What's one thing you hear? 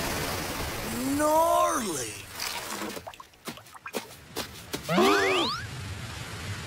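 A young man yells with effort.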